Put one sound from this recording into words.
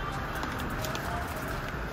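A paper bag rustles as a hand pats it.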